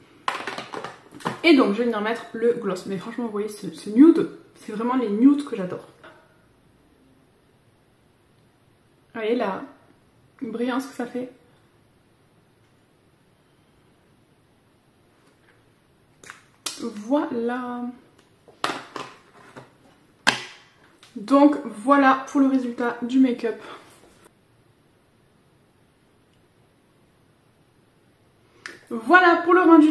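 A young woman talks calmly and closely into a microphone, in bursts with pauses.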